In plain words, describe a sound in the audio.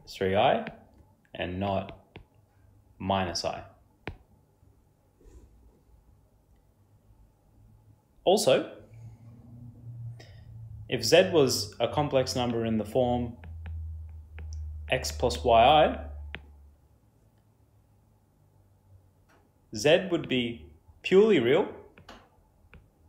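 A young man speaks calmly and clearly into a close microphone, in short phrases with pauses.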